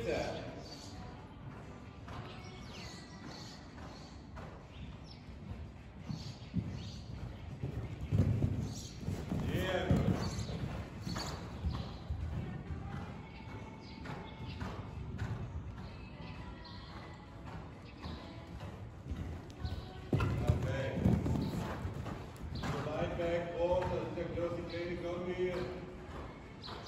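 A horse canters on sand footing in a large indoor hall.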